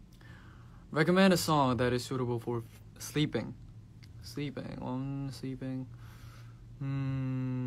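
A young man speaks close to a microphone, in a soft, lively voice.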